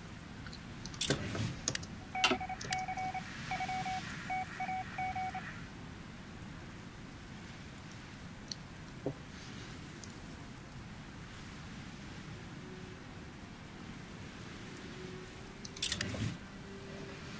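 Sharp interface clicks sound as a game window closes.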